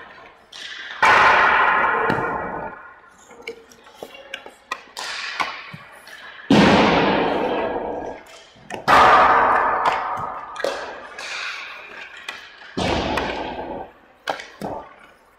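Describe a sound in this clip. A hockey stick slaps pucks with sharp cracks.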